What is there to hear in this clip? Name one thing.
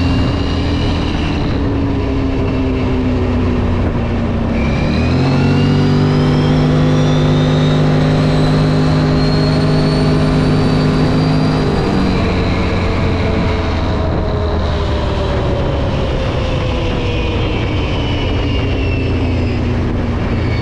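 Wind rushes past the rider outdoors.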